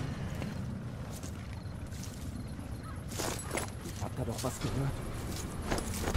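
Footsteps crunch softly on gravel.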